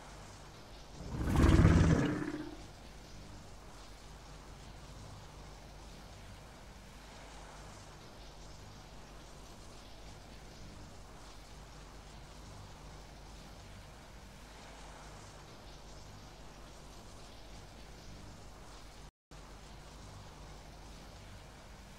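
Electricity hums and crackles steadily.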